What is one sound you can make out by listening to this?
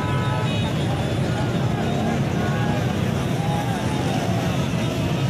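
Dense traffic rumbles and idles steadily outdoors.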